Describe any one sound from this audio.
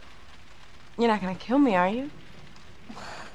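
A young woman speaks playfully.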